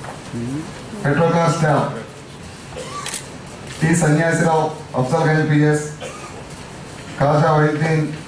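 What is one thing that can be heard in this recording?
A man speaks formally.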